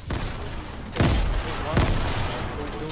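Gunshots bang in sharp bursts.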